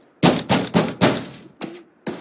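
Knuckles knock rapidly on a wooden door.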